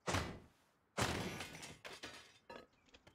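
A metal barrel breaks apart with a rattling crash.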